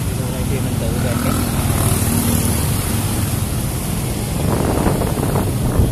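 Motorbike engines hum and rumble close by.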